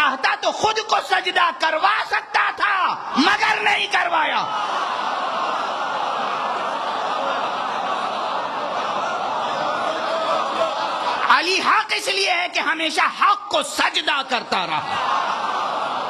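A man speaks with passion into a microphone, heard through loudspeakers.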